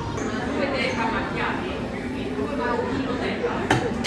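An espresso machine hisses and hums.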